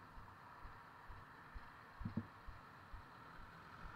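Traffic rumbles past nearby.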